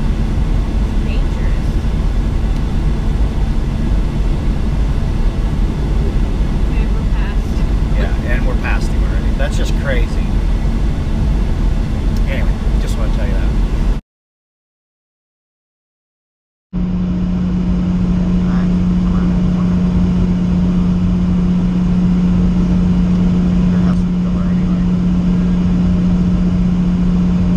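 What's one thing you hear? Tyres roar on the road at speed.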